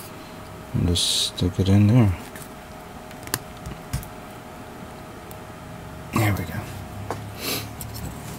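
Plastic model kit parts click as they snap together.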